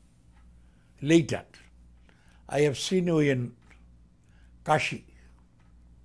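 An elderly man speaks calmly and slowly into a close microphone, with pauses.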